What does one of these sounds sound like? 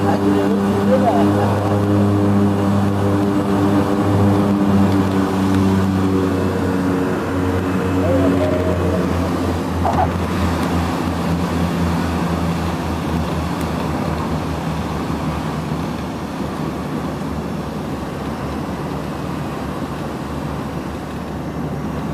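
A propeller engine drones loudly and steadily, then eases off.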